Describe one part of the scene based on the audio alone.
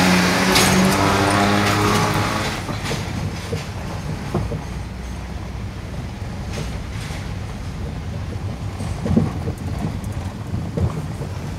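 A bus engine roars close by and fades as the bus drives away.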